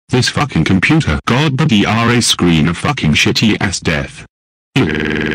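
A man speaks loudly and angrily in a cartoonish voice.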